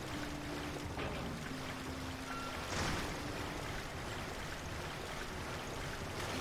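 A person wades through waist-deep water.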